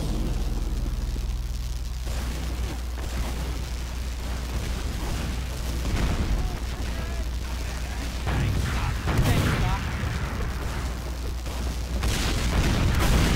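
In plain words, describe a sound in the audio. Melee weapons swing and strike with whooshing thuds.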